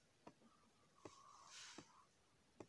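A marker squeaks faintly on a whiteboard.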